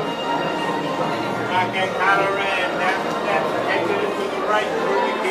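A crowd of people chatters loudly in an echoing room.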